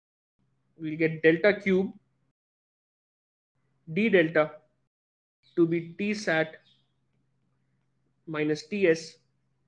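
A man speaks calmly and slowly into a close microphone, with pauses.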